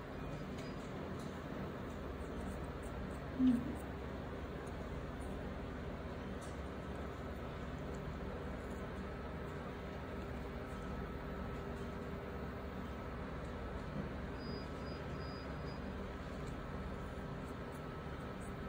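A wooden stick scrapes softly against a fingernail.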